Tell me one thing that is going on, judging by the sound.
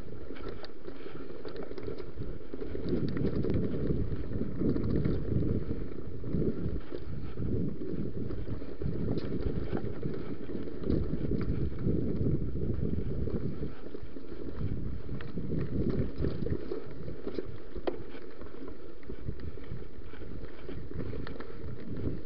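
Bicycle tyres crunch and rattle over a bumpy dirt trail.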